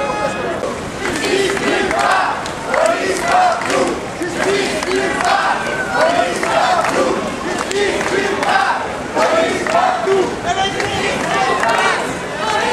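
A crowd of men and women chants and shouts outdoors.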